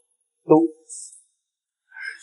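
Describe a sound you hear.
A young man speaks coldly and close by.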